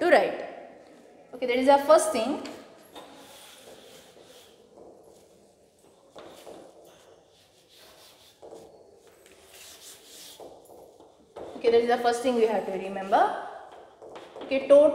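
A woman speaks clearly, explaining.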